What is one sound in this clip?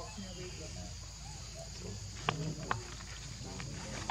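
A small monkey rustles through dry leaves and plants.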